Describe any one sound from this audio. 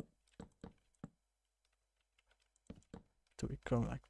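Wooden blocks thud softly as they are placed one after another.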